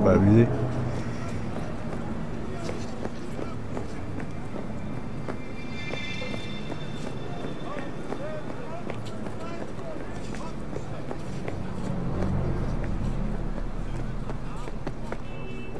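Footsteps tread on concrete.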